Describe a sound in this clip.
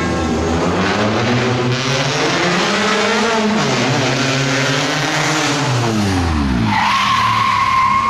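A rally hatchback races past close by at full throttle, its engine pitch dropping as it goes.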